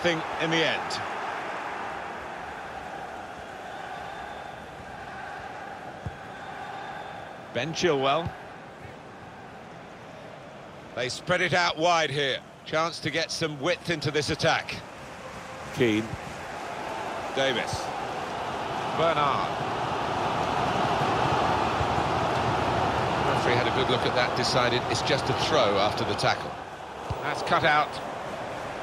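A large stadium crowd murmurs and roars steadily, swelling louder toward the end.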